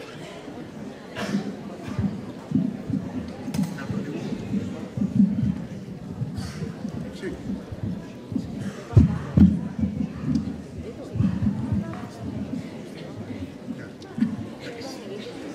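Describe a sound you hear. An audience murmurs and chatters quietly.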